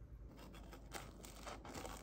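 A fork scrapes on a plate.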